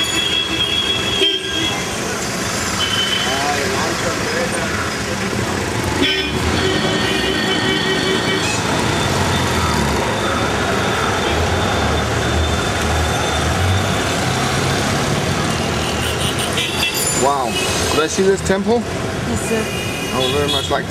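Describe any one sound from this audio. Busy street traffic rumbles and hums all around.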